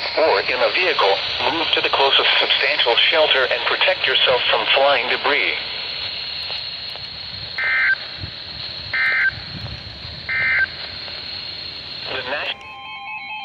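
A radio hisses with steady static.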